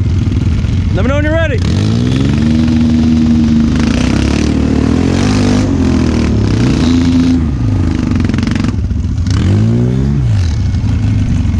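An engine revs up and down.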